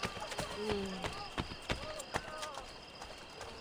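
Footsteps patter quickly on stone steps.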